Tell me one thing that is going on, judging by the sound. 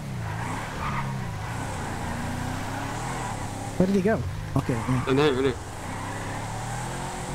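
A pickup truck engine hums and revs steadily.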